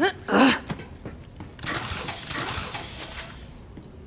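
A metal crate clanks open.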